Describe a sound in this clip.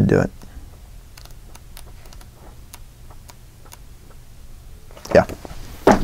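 Book pages rustle as they are turned.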